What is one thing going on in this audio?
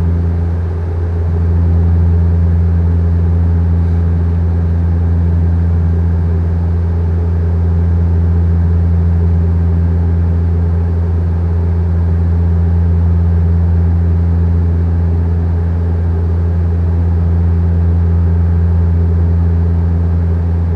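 A jet engine drones steadily inside an aircraft cabin.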